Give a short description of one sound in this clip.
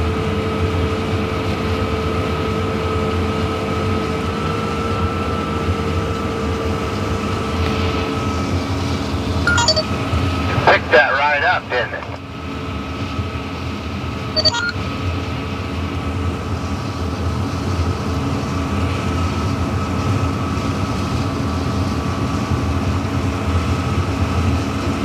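A combine harvester's engine roars steadily close by.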